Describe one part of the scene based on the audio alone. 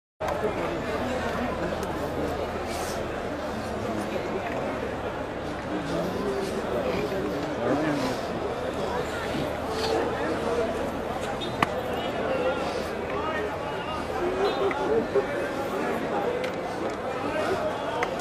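A large crowd of men murmurs and talks outdoors.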